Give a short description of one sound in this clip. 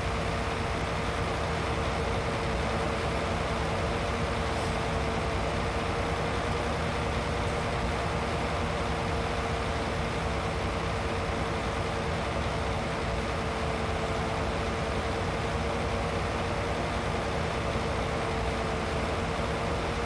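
A tractor engine drones steadily.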